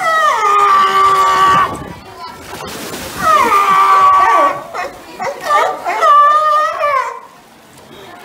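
Sea lions bark loudly.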